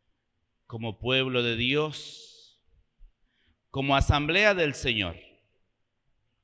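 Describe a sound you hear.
A man speaks calmly into a microphone, with a slight echo.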